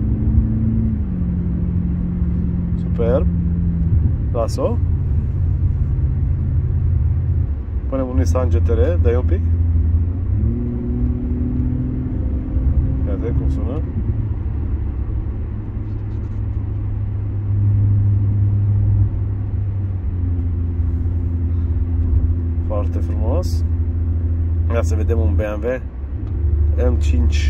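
Recorded car engine sounds rumble and rev through loudspeakers, changing from one engine to the next.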